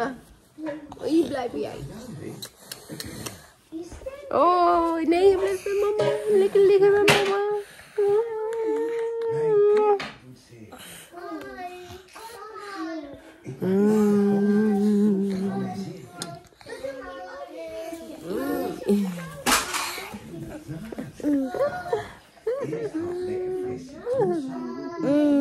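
A young woman sings softly and tenderly close by.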